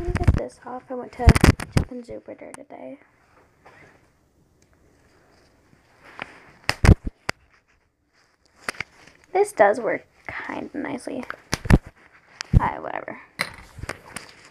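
A plastic wristband crinkles and taps close to a microphone.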